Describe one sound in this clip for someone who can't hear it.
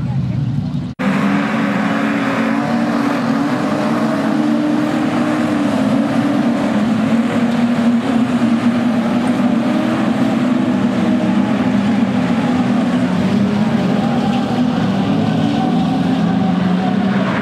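Race car engines roar steadily as cars circle a dirt track.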